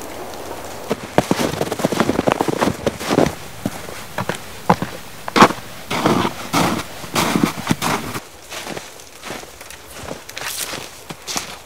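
Boots crunch through snow with heavy steps.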